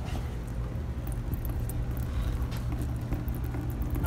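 Liquid trickles into a plastic bucket.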